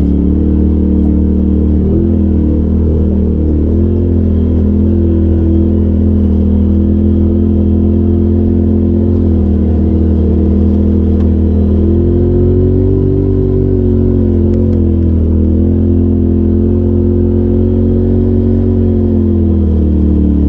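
An off-road vehicle's engine drones steadily close by, rising and falling in pitch.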